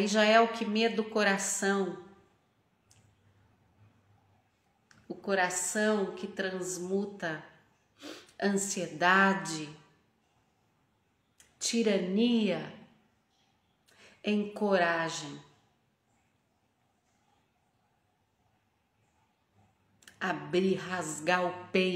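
A woman talks close up, calmly and with pauses.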